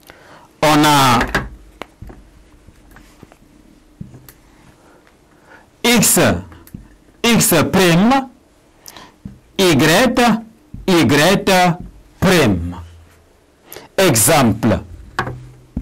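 A man speaks through a clip-on microphone in short bursts with pauses.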